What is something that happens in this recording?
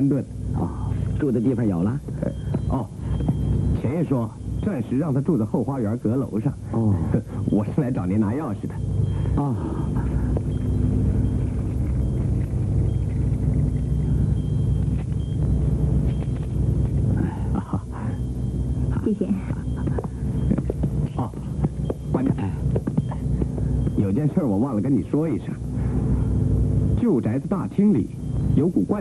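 A young man speaks with a lively tone.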